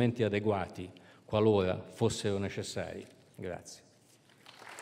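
An elderly man speaks calmly into a microphone over loudspeakers in a large hall.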